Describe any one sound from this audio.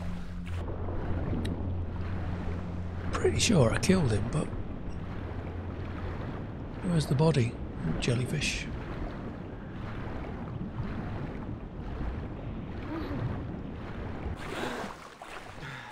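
Water gurgles, muffled as if heard underwater.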